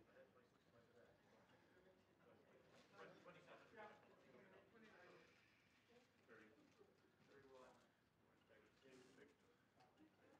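A young woman speaks calmly into a nearby microphone.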